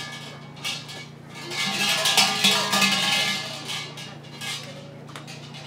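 Hanging metal bells clang and rattle.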